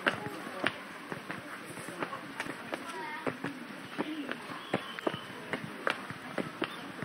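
Footsteps climb stone steps outdoors.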